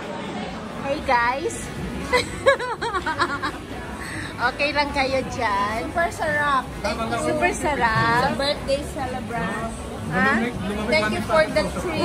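A woman talks close by, animated and cheerful.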